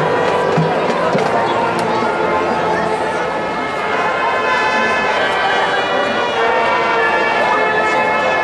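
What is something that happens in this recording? A marching band plays brass and woodwinds loudly outdoors.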